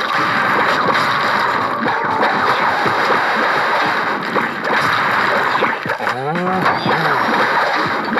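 Game sound effects of plants shooting and zombies being hit play quickly and busily.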